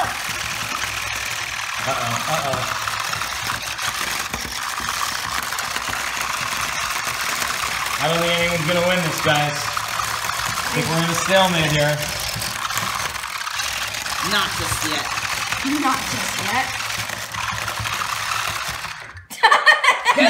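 Small toy robot motors whir steadily.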